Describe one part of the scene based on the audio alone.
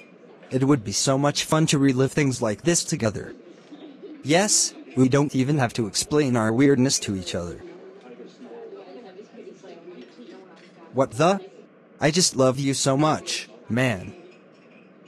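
A young man speaks angrily, close by.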